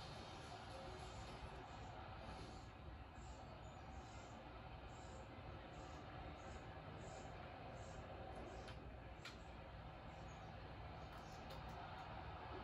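A stadium crowd murmurs steadily through a television speaker.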